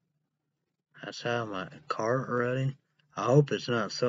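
A young man speaks close to the microphone.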